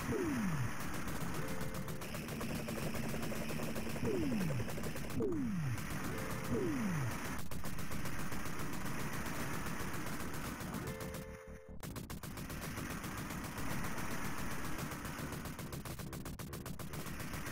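Arcade explosions boom.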